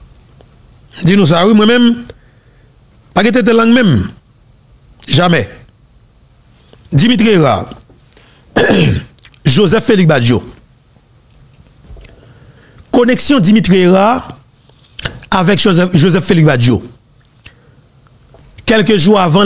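A man speaks into a close microphone in short, lively bursts with pauses between.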